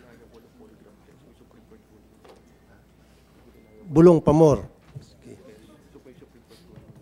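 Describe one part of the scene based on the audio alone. A man speaks quietly through a microphone, heard faintly in a large room.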